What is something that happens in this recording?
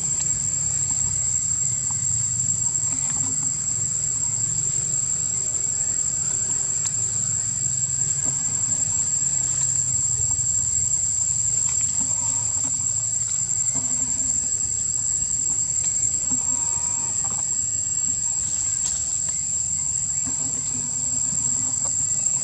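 Dry leaves rustle as monkeys scamper over them.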